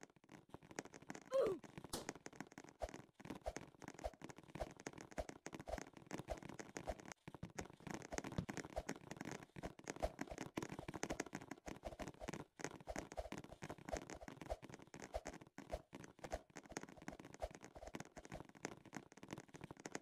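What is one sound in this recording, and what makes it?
Light footsteps patter quickly and steadily.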